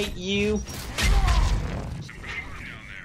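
A heavy blast booms with a deep rumble.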